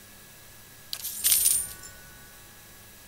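A bright jingle of coins rings out once.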